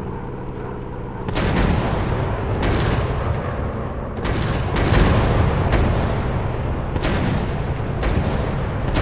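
A propeller plane engine drones steadily up close.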